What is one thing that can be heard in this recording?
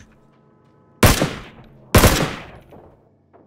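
A rifle fires two loud shots.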